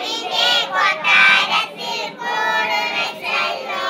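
A woman sings with animation nearby.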